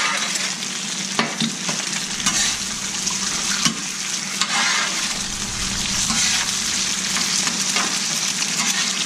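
Food sizzles loudly on a hot griddle.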